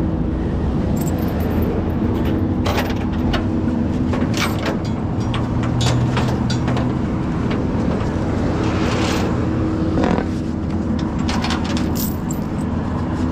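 Metal chains and straps clink and rattle as a man handles them.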